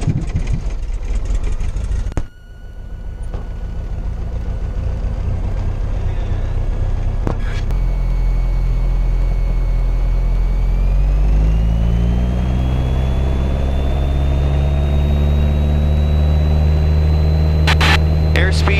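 A small plane's propeller engine drones loudly and rises in pitch as it speeds up.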